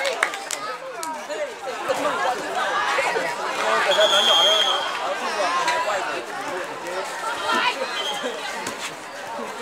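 A crowd of young people chatter and cheer outdoors.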